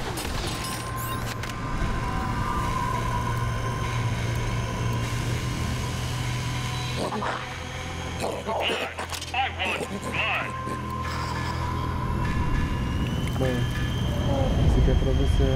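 Game menu sounds click and chime.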